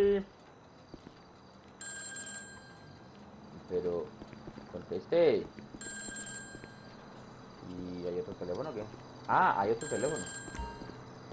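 Footsteps walk on hard pavement.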